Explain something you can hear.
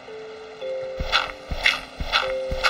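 A shovel digs into dirt with crunching thuds.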